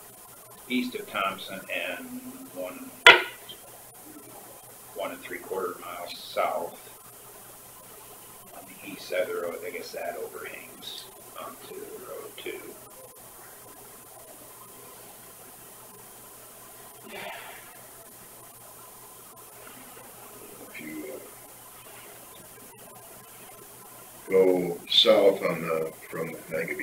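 Men talk calmly in a small room, heard through a room microphone.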